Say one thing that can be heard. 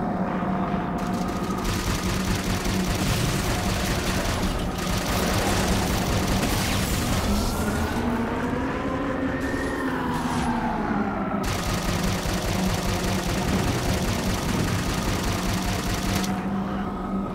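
A jet engine roars loudly in long bursts.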